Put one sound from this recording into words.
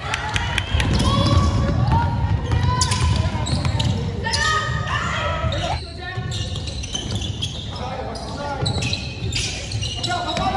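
Spectators shout and cheer from the sidelines.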